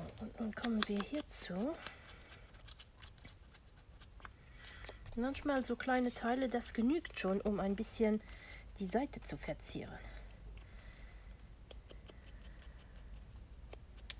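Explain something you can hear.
A foam blending tool dabs and taps softly on paper.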